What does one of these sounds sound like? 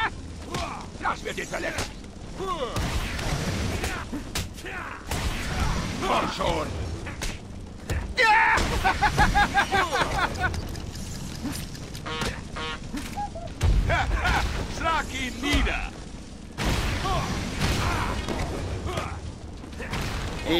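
Heavy punches and kicks land with dull thuds, again and again.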